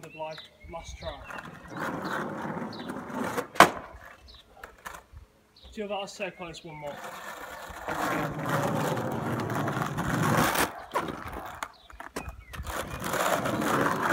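Skateboard wheels roll on asphalt.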